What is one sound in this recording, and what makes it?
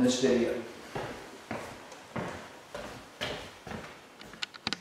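Footsteps thud on the floor as a man walks.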